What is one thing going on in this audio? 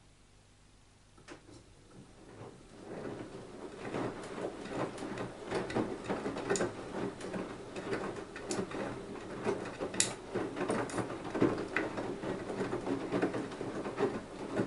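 Water sloshes and splashes inside a turning washing machine drum.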